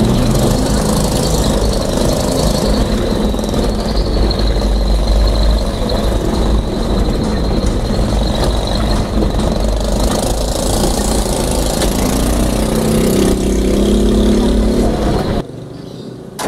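A car engine hums and tyres rumble over a rough road.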